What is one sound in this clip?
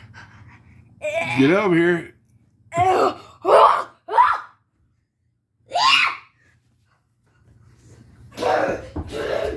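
A young boy shouts and squeals playfully close by.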